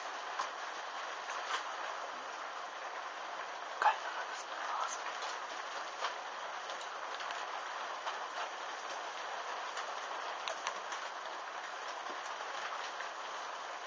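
Flames roar steadily as fabric burns.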